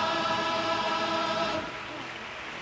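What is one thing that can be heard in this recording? Guitars strum along with the singing.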